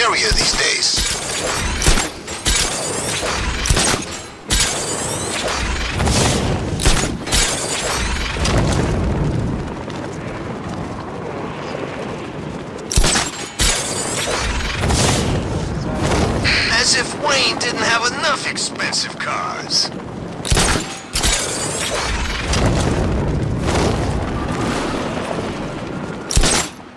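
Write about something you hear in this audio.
Wind rushes loudly past a gliding figure.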